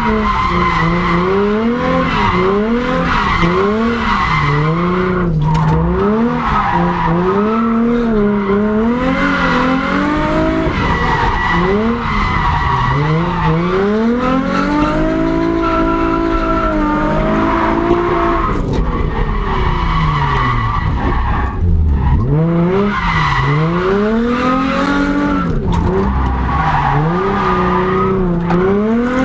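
A car engine revs hard, its pitch rising and falling constantly.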